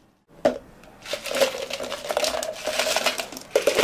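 Ice cubes clatter into a plastic cup.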